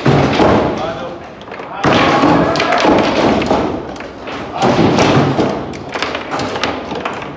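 Foosball rods spin and rattle.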